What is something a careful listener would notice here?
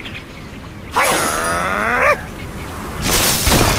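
A cartoon bird squawks as it is flung from a slingshot.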